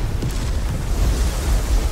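A magical energy blast roars and crackles.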